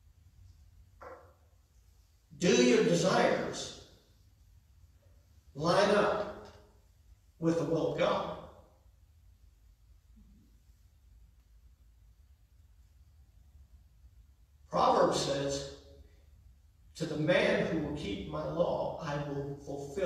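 A man preaches through a microphone in bursts with long pauses, in a large echoing hall.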